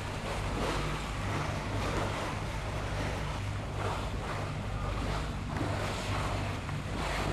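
Killer whales splash as they surface.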